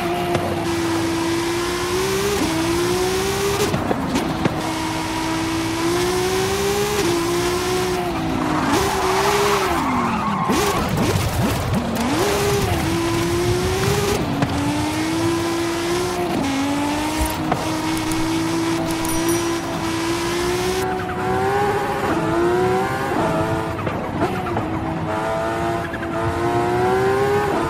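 A car engine revs high and shifts gears.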